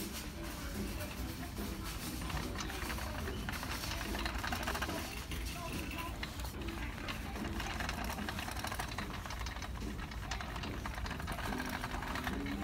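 Clothes rustle as they brush past close by.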